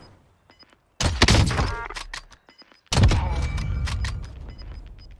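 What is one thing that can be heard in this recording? A rifle fires two loud booming shots that echo away.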